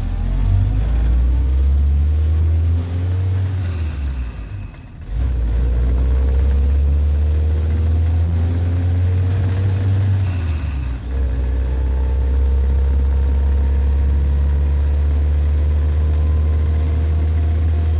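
An open vehicle's engine rumbles loudly, its pitch rising and falling as it shifts gears.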